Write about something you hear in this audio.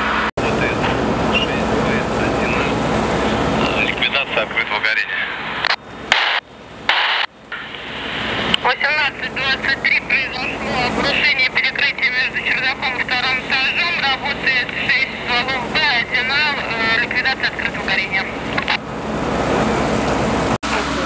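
Water hisses steadily from a fire hose spraying a burning building.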